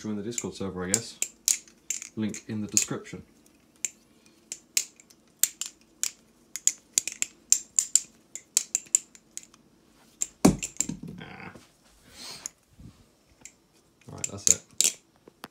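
A butterfly knife clicks and clacks as it is flipped open and shut.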